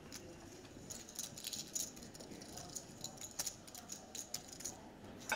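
Poker chips click and clatter together in a player's hand.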